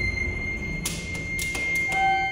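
An elevator button clicks as a finger presses it.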